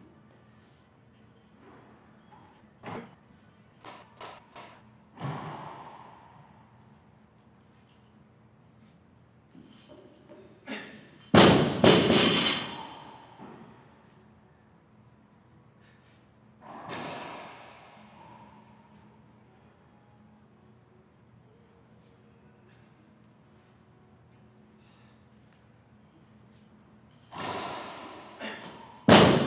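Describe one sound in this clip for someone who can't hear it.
A heavy barbell crashes down onto the floor.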